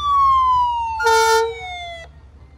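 An ambulance horn blasts briefly.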